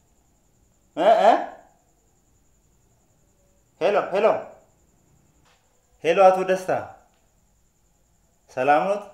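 A man speaks on a phone in short bursts, close by.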